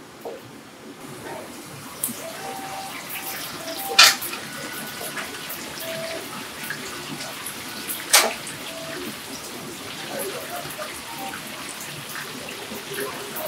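Food sizzles and crackles loudly in hot oil.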